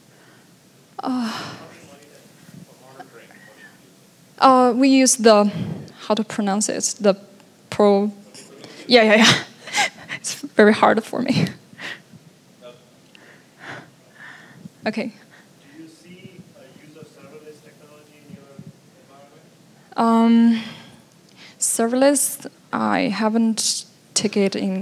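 A young woman speaks into a microphone through a loudspeaker, pausing often.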